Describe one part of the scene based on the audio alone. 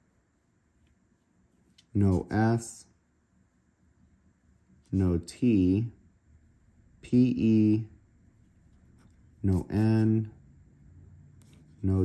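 A pen taps and scratches on a card.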